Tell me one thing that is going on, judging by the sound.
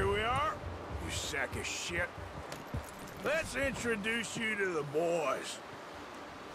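A man speaks gruffly, close by.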